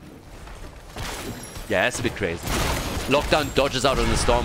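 Magic blasts and laser zaps crackle in a fierce fight.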